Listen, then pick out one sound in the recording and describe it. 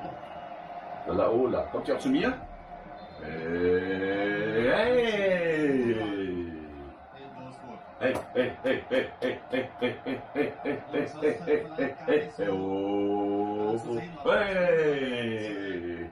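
A man chants and sings loudly nearby.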